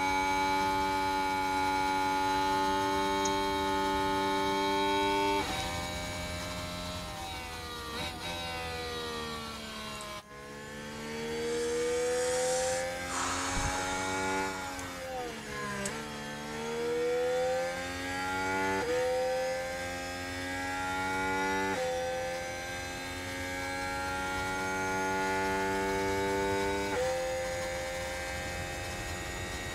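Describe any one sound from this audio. A racing car engine screams at high revs, its pitch falling and climbing again as it shifts gears.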